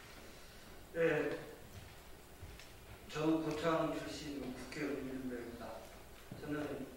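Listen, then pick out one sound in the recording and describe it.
An elderly man speaks formally into a microphone, heard through a loudspeaker in a large room.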